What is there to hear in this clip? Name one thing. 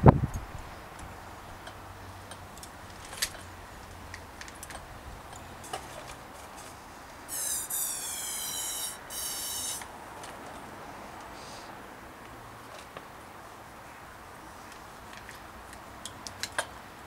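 Small metal and plastic parts click and tap as they are fitted together.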